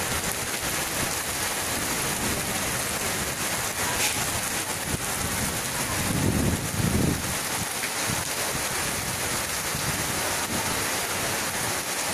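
Strong wind roars and gusts through trees.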